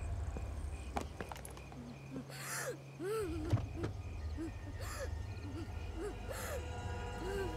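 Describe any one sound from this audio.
A car door opens and shuts with a clunk.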